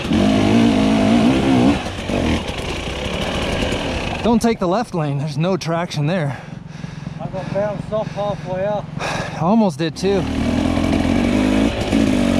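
A dirt bike engine revs and chugs close by.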